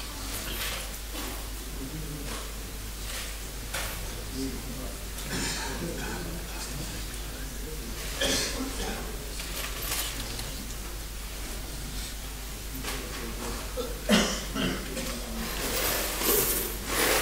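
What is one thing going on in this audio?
A large crowd murmurs and rustles in a big echoing hall.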